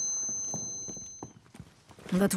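Rifle shots fire in a quick burst.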